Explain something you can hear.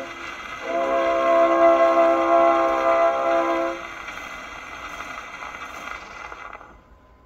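A gramophone record hisses and crackles as it spins.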